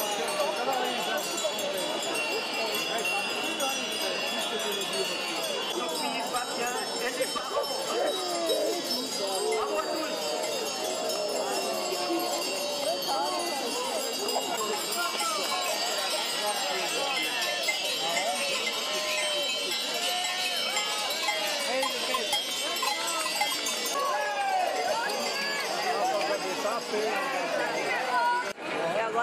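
A large outdoor crowd chatters all around.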